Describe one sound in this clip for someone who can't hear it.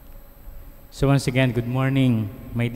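A man speaks slowly and calmly into a microphone in a large echoing hall.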